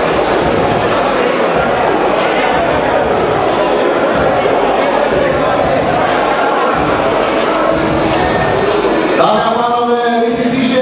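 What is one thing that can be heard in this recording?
A crowd chatters loudly in a large echoing hall.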